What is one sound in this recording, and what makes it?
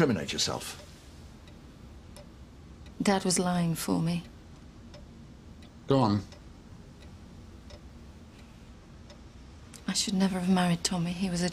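A young woman speaks quietly and tensely nearby.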